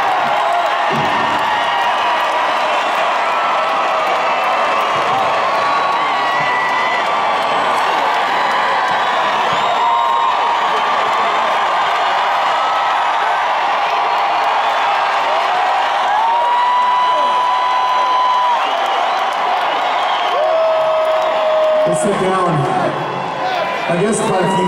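A large crowd cheers and screams loudly nearby.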